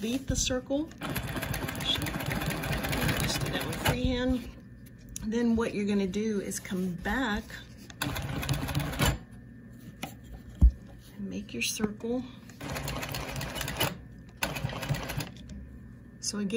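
A sewing machine stitches in quick, rattling bursts.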